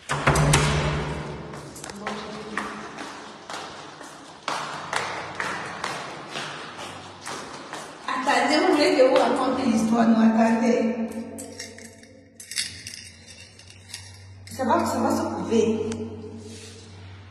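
A woman talks close to a phone microphone, with animation.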